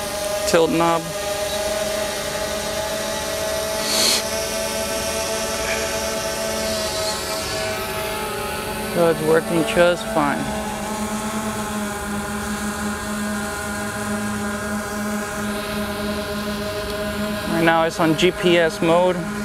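A small drone's propellers whir with a steady, high buzzing hum.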